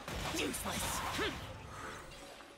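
Magic attacks burst and whoosh loudly.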